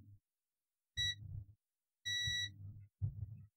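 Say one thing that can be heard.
A multimeter beeps briefly twice.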